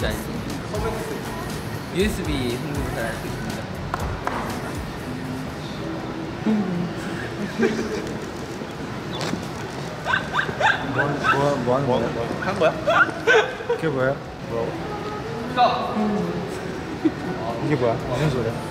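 Several young men chat and laugh close by.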